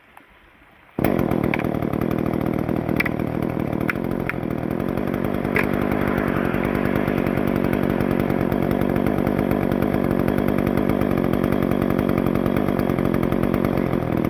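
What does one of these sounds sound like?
A chainsaw starts up and roars steadily up close.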